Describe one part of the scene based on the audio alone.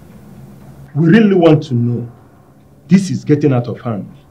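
An elderly man speaks forcefully, close by.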